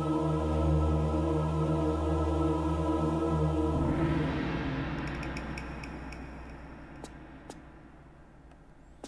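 Low music drones steadily and fades away.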